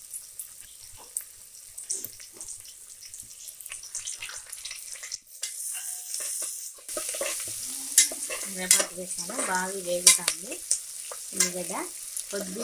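Onions sizzle in hot oil.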